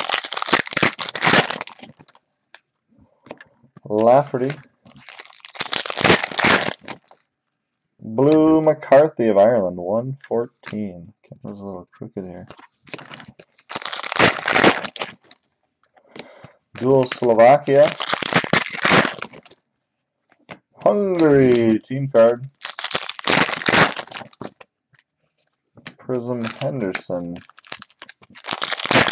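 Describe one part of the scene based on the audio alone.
Foil wrappers crinkle and rustle in hands.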